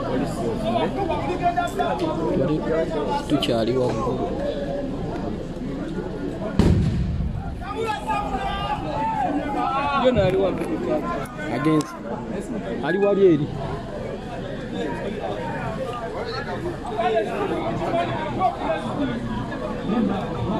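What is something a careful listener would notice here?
A crowd of men and women talk and shout excitedly nearby, outdoors.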